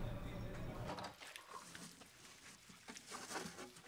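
A sponge scrubs a sink.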